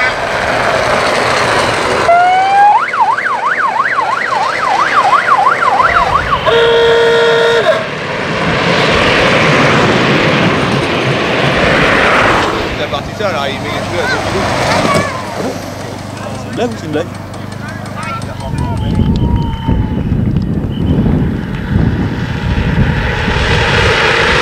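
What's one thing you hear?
Small carts roll fast down a paved road with a rushing, whirring sound.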